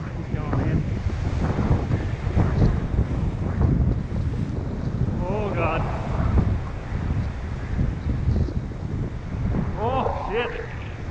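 Waves crash and surge against a rocky shoreline outdoors.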